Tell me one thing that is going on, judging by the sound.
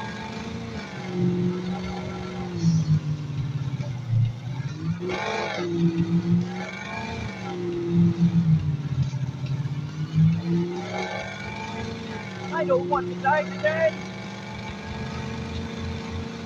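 A car engine hums steadily, its pitch rising and falling as it speeds up and slows.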